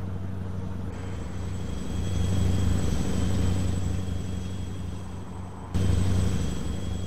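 Another truck roars past close by.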